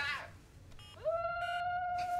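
A mobile phone gives a steady electronic tone.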